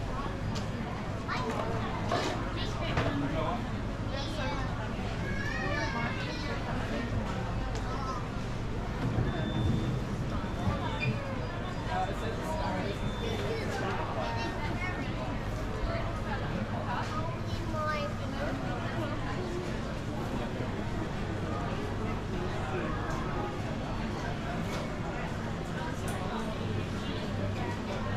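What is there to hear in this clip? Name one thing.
A crowd of men and women chatter all around in an echoing indoor hall.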